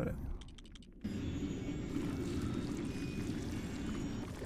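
A magic spell hums and shimmers.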